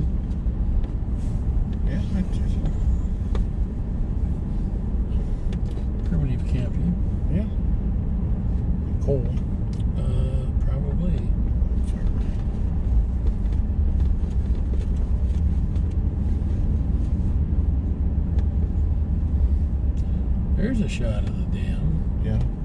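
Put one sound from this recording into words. Tyres rumble on a paved road.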